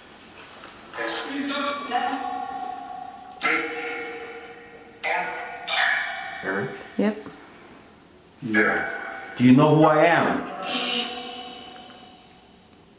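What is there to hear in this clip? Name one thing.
A handheld electronic device emits short bursts of distorted, echoing sound.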